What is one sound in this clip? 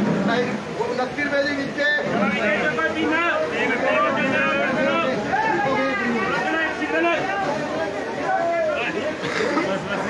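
Several men talk over one another close by.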